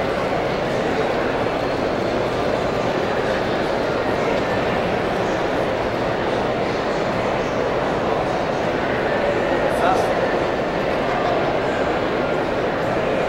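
A man speaks with animation through a microphone, heard over loudspeakers in a large echoing hall.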